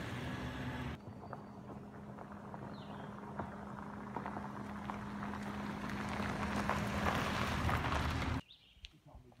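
A car approaches on gravel and passes close by.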